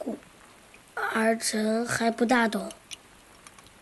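A young boy speaks softly and hesitantly.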